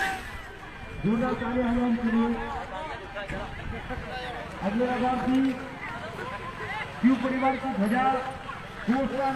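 A man shouts excitedly close by.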